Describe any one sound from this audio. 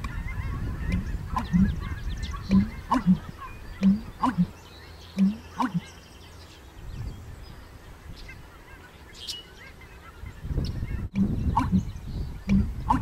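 A bird gives short, low, hollow calls again and again.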